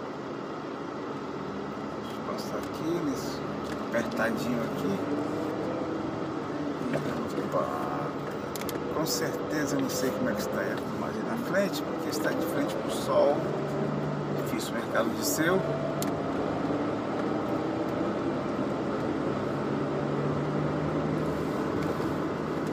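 A car engine hums steadily while driving slowly along a street.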